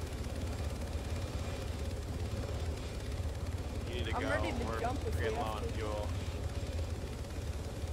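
A helicopter's rotor thumps in a steady low drone.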